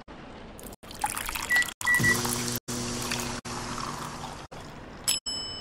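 Liquid streams into a cup.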